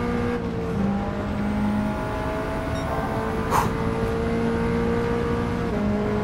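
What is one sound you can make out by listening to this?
A racing car engine roars at high revs, shifting up through the gears.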